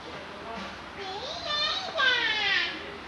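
A young girl speaks nearby in a high, sing-song voice.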